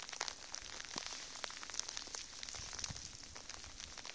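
A dog pushes through dry brush, rustling and snapping twigs.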